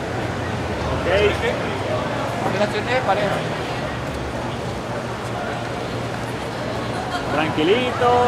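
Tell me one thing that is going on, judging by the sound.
A man speaks in a steady voice outdoors.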